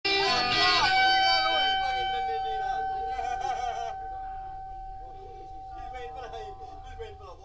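An electric guitar rings out with a long, steady, droning note that slowly fades.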